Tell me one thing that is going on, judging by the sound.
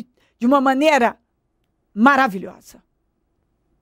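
A woman speaks firmly and close to a microphone.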